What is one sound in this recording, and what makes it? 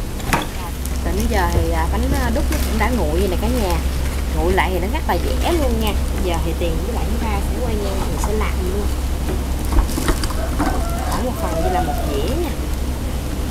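A middle-aged woman talks calmly nearby.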